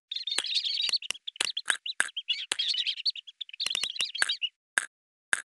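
Cartoon chicks cheep rapidly in high, squeaky bursts.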